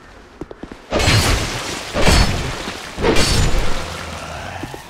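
Sword blows strike hard in quick bursts.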